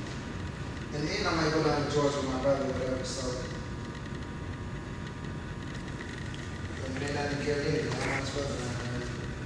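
A man speaks into a wall intercom in an echoing hall.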